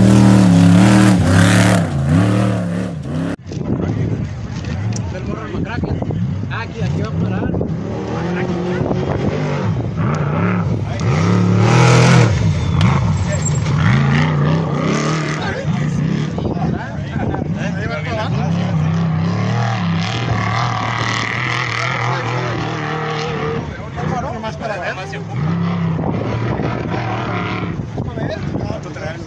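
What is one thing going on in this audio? A race truck engine roars loudly as it speeds past.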